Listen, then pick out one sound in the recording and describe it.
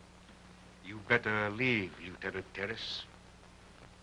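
An older man speaks.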